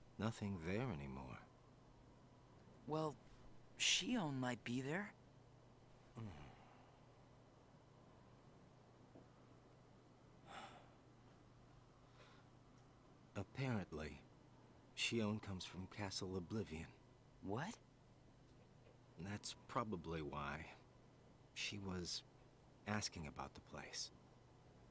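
A young woman talks into a microphone, in short bursts.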